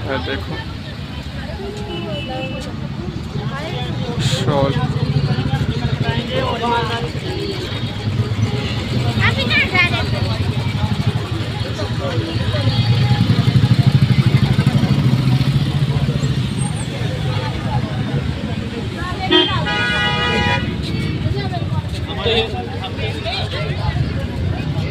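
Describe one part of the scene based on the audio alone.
Traffic engines rumble steadily outdoors on a busy street.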